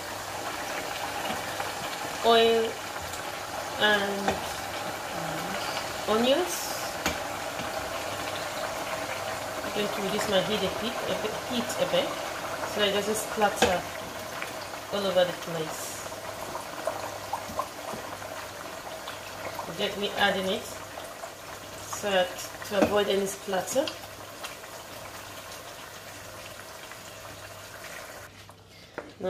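Food sizzles steadily in a pan.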